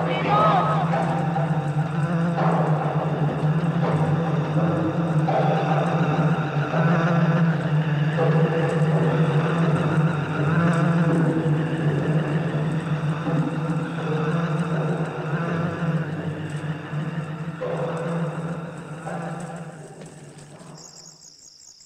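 A group of people chants in low voices.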